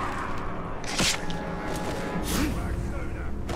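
A blade stabs into flesh with a sharp thud.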